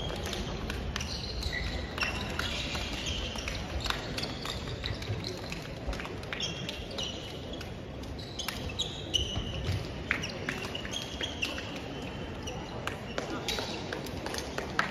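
Sneakers squeak on a wooden floor.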